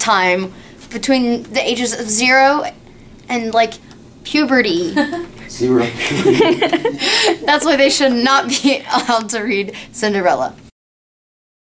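A young woman talks animatedly close by.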